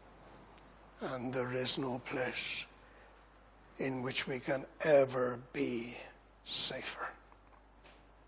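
An older man speaks slowly and earnestly into a microphone, in bursts with long pauses.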